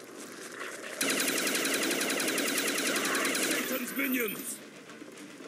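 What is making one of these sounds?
A machine gun fires in a rapid burst.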